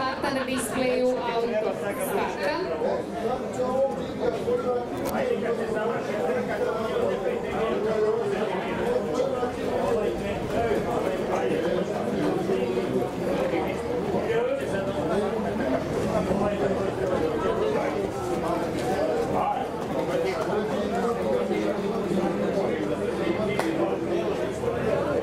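A crowd murmurs and chatters outdoors.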